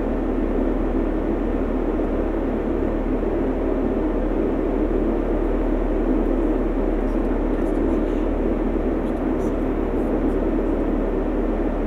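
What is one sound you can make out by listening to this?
A metro train rumbles steadily through a tunnel.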